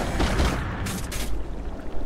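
A blade whooshes through the air in a fast spin.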